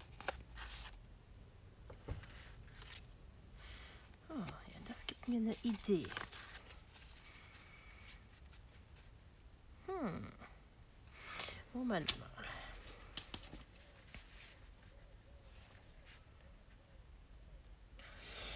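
Paper cards rustle and shuffle as they are handled.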